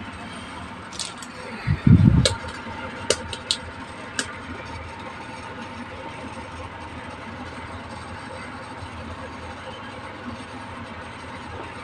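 Small plastic toy pieces click and tap together as they are handled.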